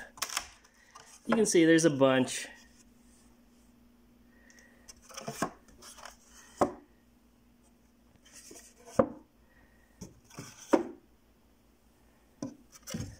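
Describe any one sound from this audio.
Wooden frames knock and clatter as they are handled.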